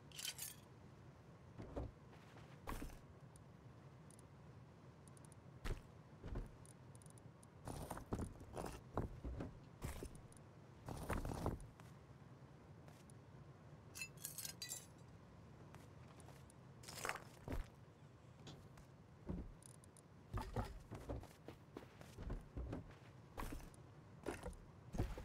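Short clicks and clatters sound as items are moved around.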